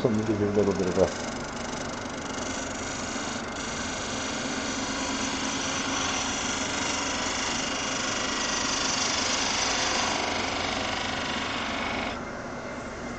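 A chisel scrapes and hisses against spinning wood on a lathe.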